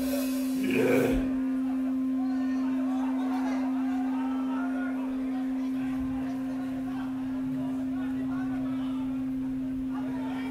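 An amplifier hums steadily.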